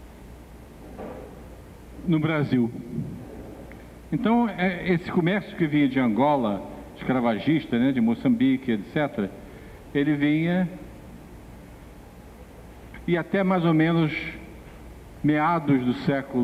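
An older man talks calmly through a microphone.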